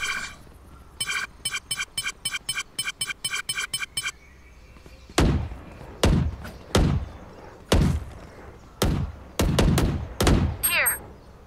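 A pistol fires in sharp single shots.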